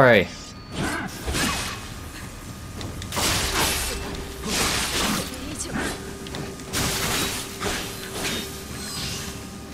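Metal swords clash and clang repeatedly.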